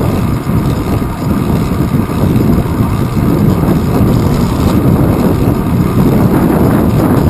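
Wind rumbles and buffets loudly, outdoors while riding.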